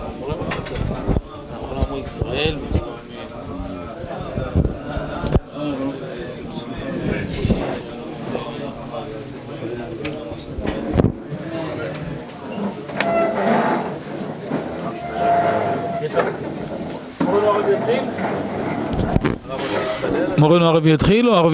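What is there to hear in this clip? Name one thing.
Several men talk and murmur nearby at the same time.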